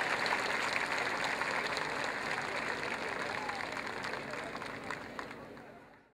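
A large outdoor crowd applauds, then the clapping fades away.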